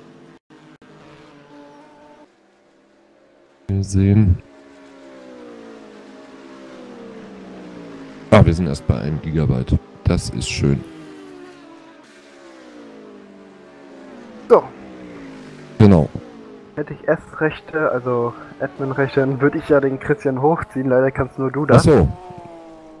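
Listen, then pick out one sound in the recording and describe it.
Racing car engines roar, rising and falling in pitch as they shift gears.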